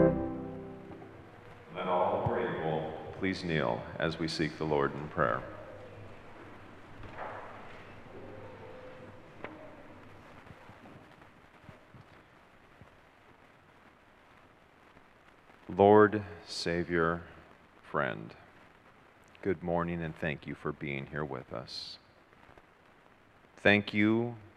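A man speaks calmly into a microphone, heard over loudspeakers in a large echoing room.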